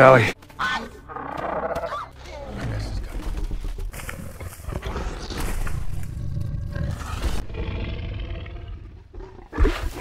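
A large creature growls and snarls.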